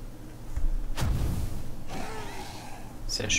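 A burst of fire whooshes loudly.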